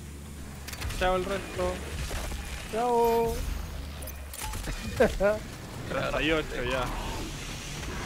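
Monsters shriek and snarl in bursts.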